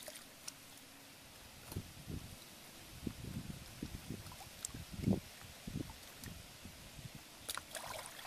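Hands splash and dig in shallow muddy water.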